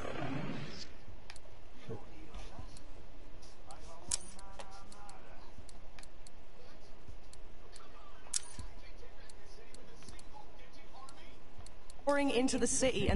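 Short electronic clicks and beeps sound as game menu items are selected.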